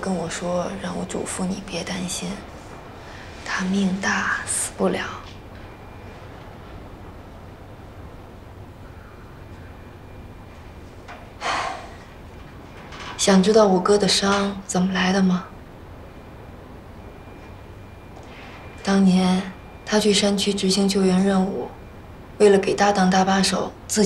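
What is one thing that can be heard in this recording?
A woman speaks softly and calmly, close by.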